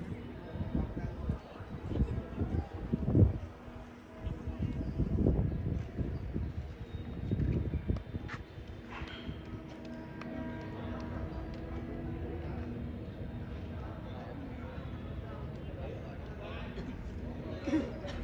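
Young men chat quietly nearby.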